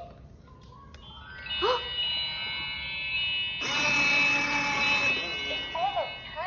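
A toy ride-on plays a bright electronic tune.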